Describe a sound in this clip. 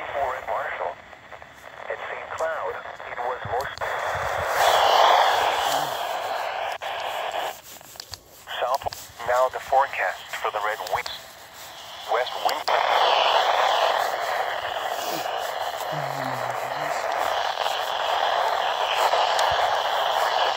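Static hiss crackles from a weather radio speaker.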